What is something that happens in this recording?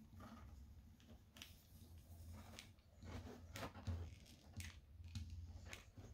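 Fabric rustles and scrapes against a hard surface as it is handled.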